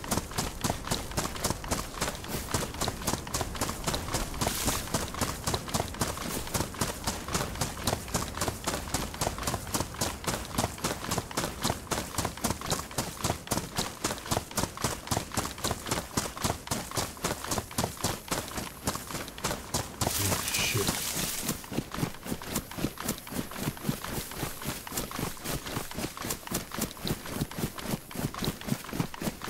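Quick footsteps run steadily through tall grass.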